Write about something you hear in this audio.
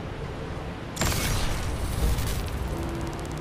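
A blast of energy bursts with a loud whoosh.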